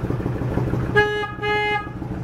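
A motorcycle's electric horn honks briefly.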